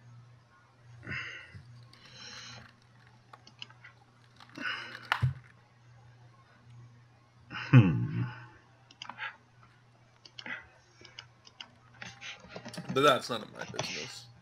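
A man talks casually and close to a microphone, in short bursts.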